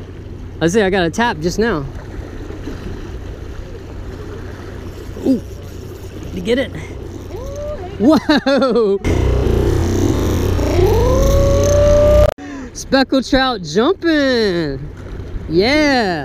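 Small waves splash against rocks.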